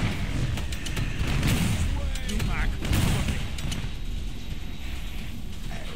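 Guns fire in rapid bursts of sharp shots.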